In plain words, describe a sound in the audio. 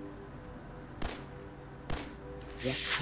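A gun fires sharp single shots.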